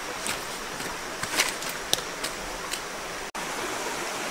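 Shallow stream water trickles gently.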